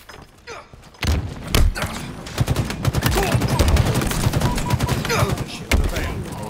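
Video game rifle fire and explosions rattle.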